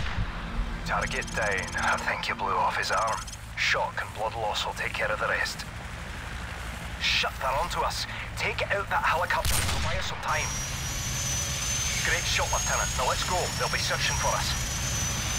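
A man talks calmly into a headset microphone.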